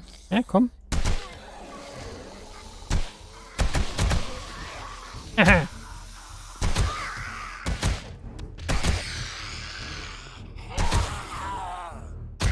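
Gunshots fire in short bursts, sharp and loud.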